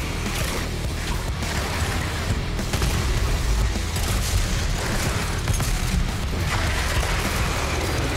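Monsters roar and growl.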